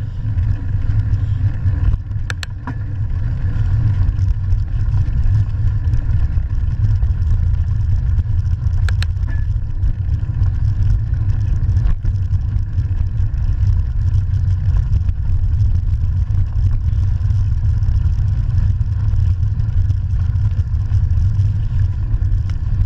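Wind rumbles loudly past a moving bicycle.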